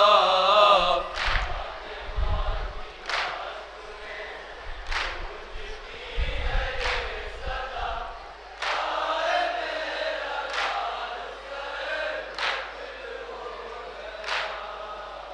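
A group of young men sing along in chorus.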